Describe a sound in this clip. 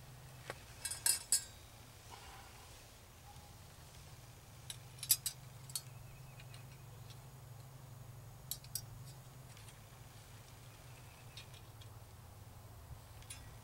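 Metal wire clinks and rattles as a man handles it.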